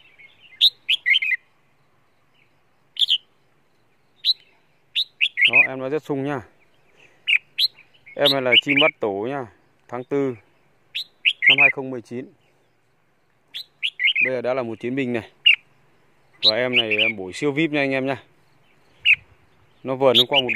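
A small bird chirps and warbles loudly close by.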